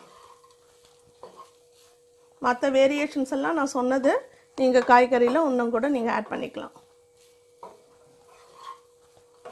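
A spatula scrapes and stirs rice in a metal pan.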